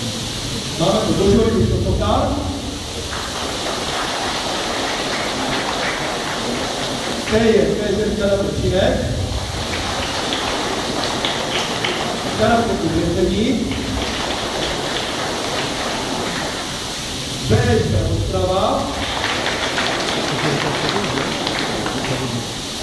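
A crowd of children murmurs in a large echoing hall.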